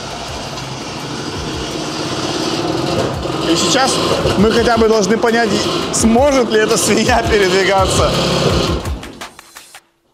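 A car engine idles with a low rumble.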